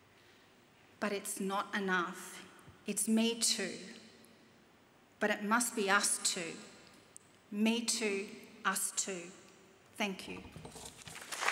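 A middle-aged woman speaks calmly into a microphone, pausing between phrases.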